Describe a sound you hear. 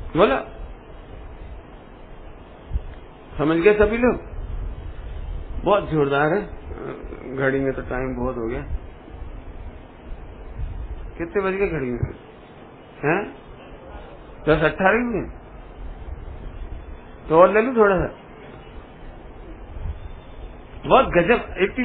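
A man speaks into a microphone with animation, in short bursts with pauses.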